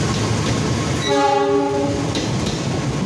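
A train horn sounds briefly.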